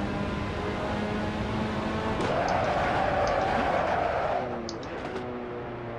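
A racing car engine drones and changes pitch as the car brakes and shifts down.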